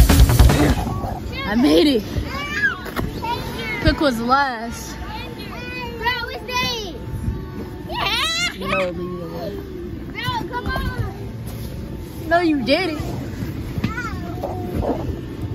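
Young children shout and squeal nearby.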